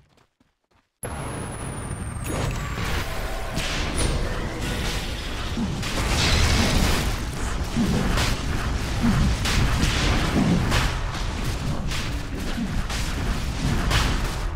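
Magic blasts and weapon strikes clash rapidly in a fight.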